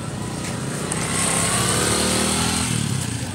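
A motorcycle engine rumbles close by.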